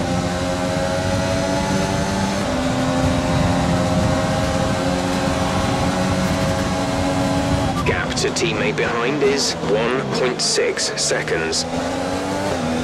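A racing car engine roars at high revs, its pitch shifting with gear changes.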